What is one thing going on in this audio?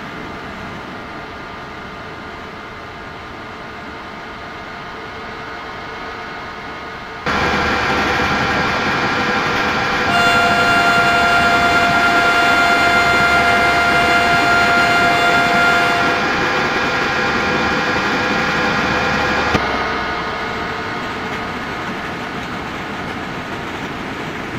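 A train's electric motors hum and whine steadily as it rolls along the tracks.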